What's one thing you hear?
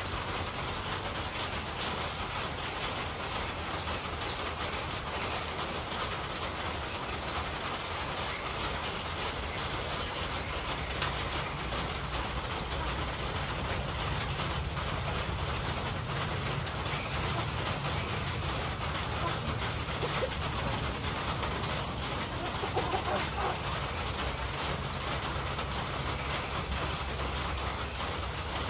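Chickens scratch and peck at dry ground.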